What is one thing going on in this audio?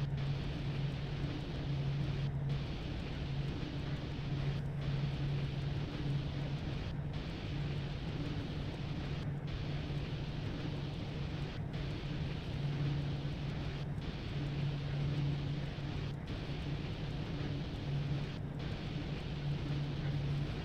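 A locomotive engine hums steadily.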